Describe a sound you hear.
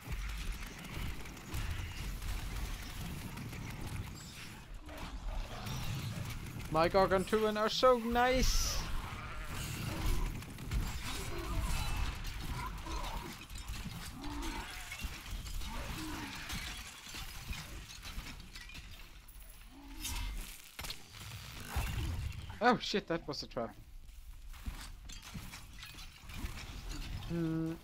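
Game combat sounds of blows and magic bursts clash repeatedly.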